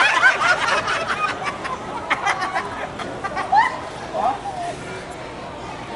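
Young men laugh loudly close by.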